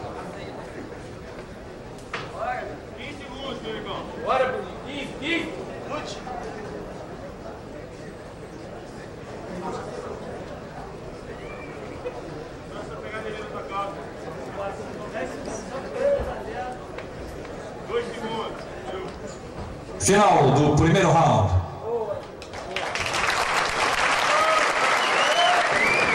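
A crowd of spectators shouts and calls out.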